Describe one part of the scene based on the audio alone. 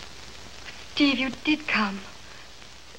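A woman speaks cheerfully.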